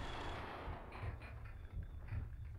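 A shotgun blasts.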